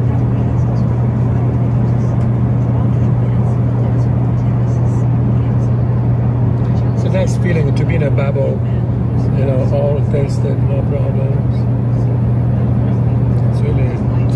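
A jet engine drones steadily inside an airliner cabin.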